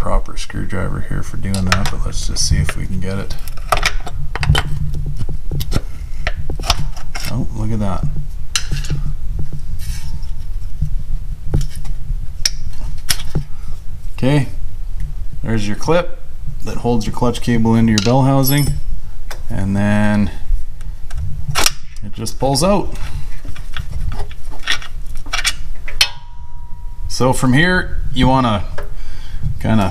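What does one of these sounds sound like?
Metal tools tap and scrape against a metal housing.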